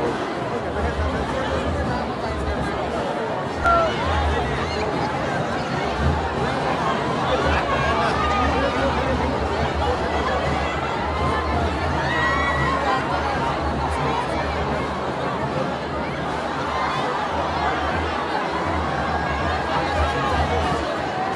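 Men and women in a dense crowd call out loudly.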